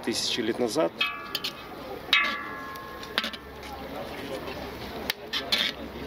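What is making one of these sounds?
A ladle scrapes and stirs vegetables in a metal pot.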